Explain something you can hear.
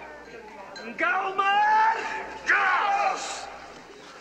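A man shouts loudly with excitement.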